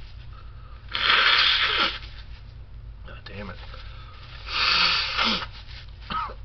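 A man blows his nose loudly into a tissue.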